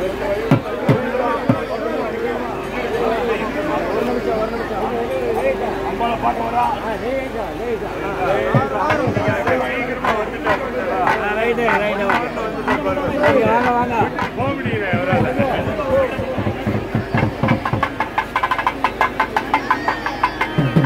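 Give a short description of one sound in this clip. A large crowd of men chants and shouts loudly all around.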